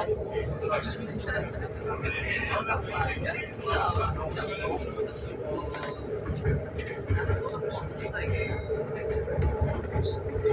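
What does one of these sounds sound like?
Train wheels clatter over rail joints.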